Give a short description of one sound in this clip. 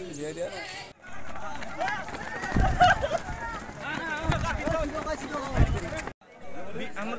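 A crowd of young men shout and chatter as they run outdoors.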